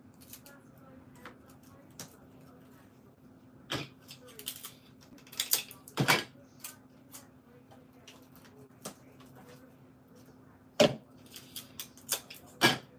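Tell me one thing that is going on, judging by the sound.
Hands rustle and tap plastic packaging in a basket.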